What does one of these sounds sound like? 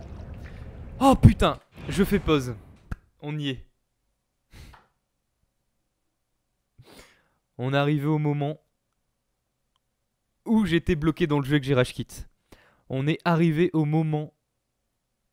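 A young man talks and laughs close to a microphone.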